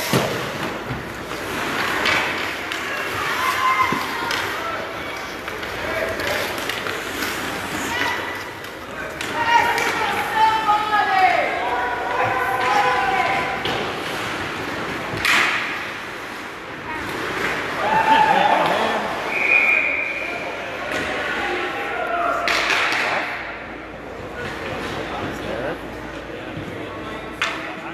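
A crowd of spectators shouts and cheers in a large echoing rink.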